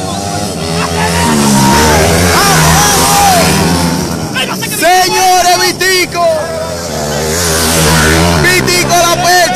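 Dirt bike engines roar and rev loudly as they pass close by.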